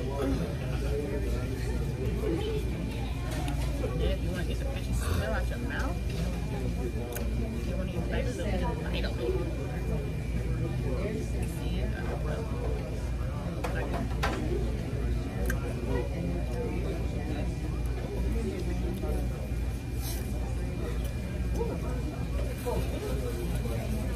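Paper wrapping crinkles as food is handled.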